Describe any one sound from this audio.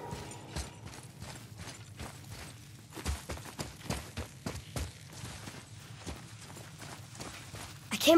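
Footsteps crunch over rocky ground.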